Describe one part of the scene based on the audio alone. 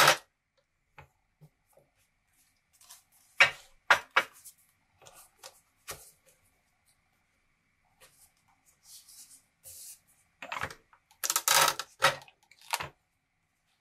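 Card stock slides and taps against a metal jig.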